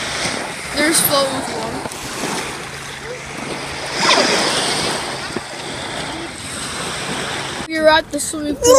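Small waves lap gently on a shore.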